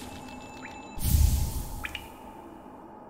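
A soft swelling chime rings out.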